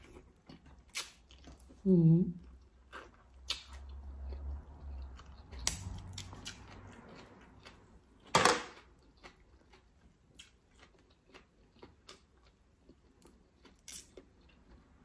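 Crab shells crack and crunch between fingers.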